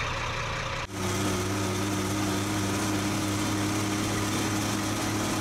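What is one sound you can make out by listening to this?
A heavy truck engine hums steadily with a low drone.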